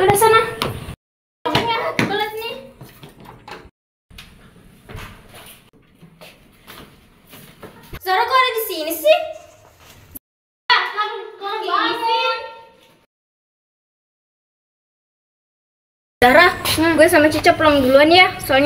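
Young girls talk with each other close by.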